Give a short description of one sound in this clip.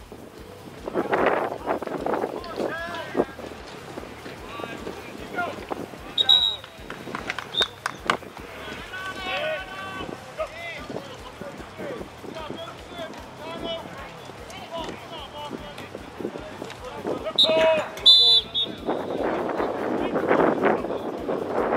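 Men shout to each other on the field.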